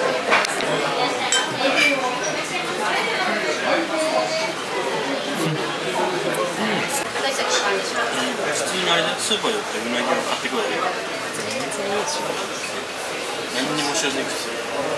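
Men and women chatter in a busy room nearby.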